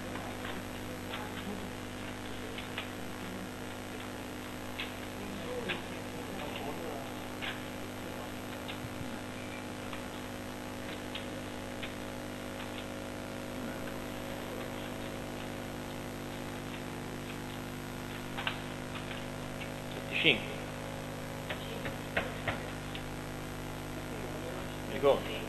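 Papers rustle and tap on a desk.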